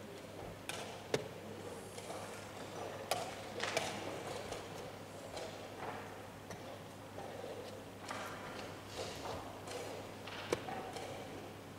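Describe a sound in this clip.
A chess clock button clicks sharply.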